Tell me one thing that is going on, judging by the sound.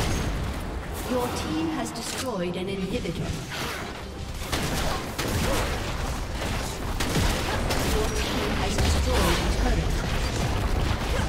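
Spell blasts and sword hits clash rapidly in a video game battle.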